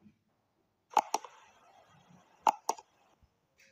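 A mouse button clicks a few times.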